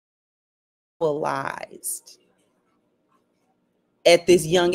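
A woman speaks loudly with animation, close by.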